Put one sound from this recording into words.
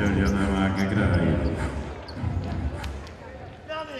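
A ball is kicked hard.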